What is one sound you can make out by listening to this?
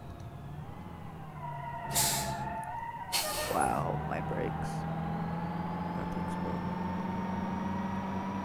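A heavy engine hums steadily.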